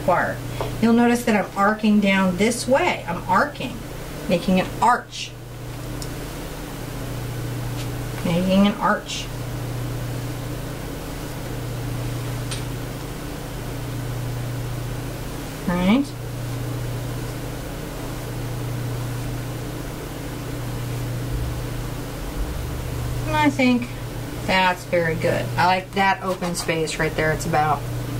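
A woman talks calmly and clearly into a microphone.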